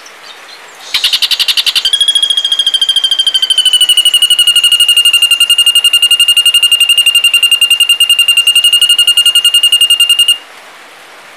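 A bird holds a long, steady whistling note.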